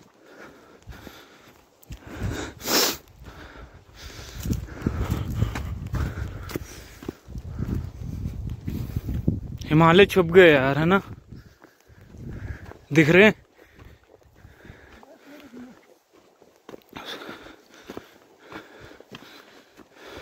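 Footsteps crunch on a dry, stony path.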